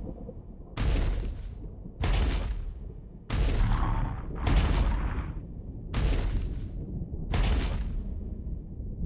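Heavy footsteps stomp slowly on a stone floor.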